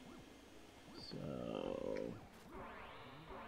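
A vacuum cleaner whooshes briefly.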